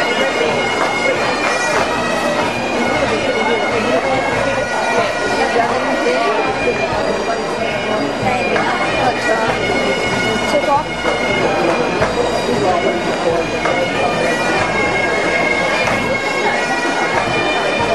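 Snare drums play a rapid rhythm with the pipes.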